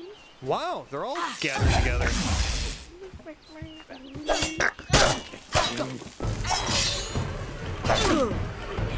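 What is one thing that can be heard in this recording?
A blade swishes and strikes in a fight.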